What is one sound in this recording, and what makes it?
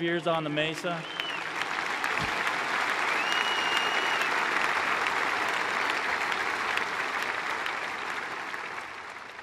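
A crowd applauds in a large open space.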